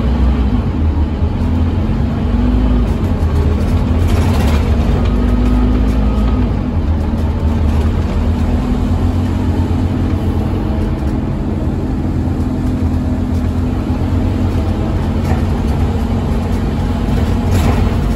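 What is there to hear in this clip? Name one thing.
A diesel city bus engine drones, heard from inside the bus as it drives.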